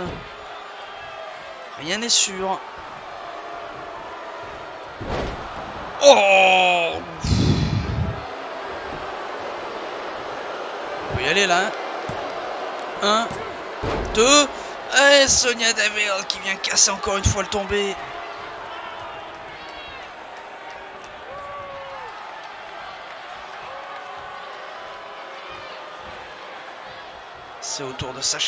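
A large crowd cheers and murmurs throughout in a big arena.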